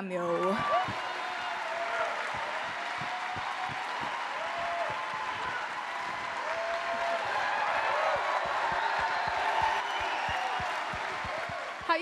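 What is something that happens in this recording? An audience claps and applauds loudly in a large hall.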